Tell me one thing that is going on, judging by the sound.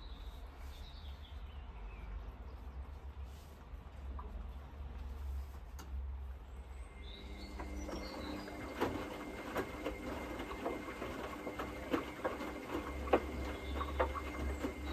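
A washing machine drum turns with a low steady hum.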